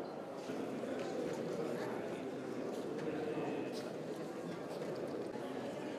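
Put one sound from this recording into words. A crowd of men and women chat and murmur in a room.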